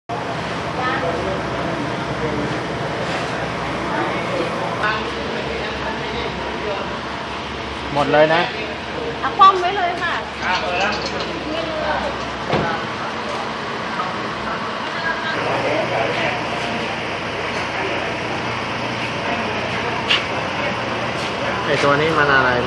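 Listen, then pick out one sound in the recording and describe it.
A car engine idles with a steady hum.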